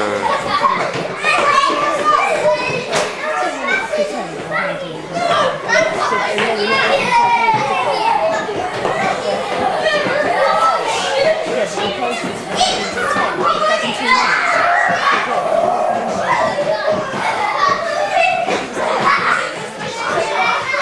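Young children chatter and shout excitedly in an echoing room.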